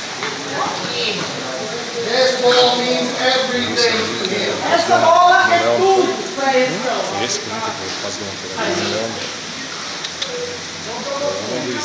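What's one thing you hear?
A man gives short, firm commands to a dog.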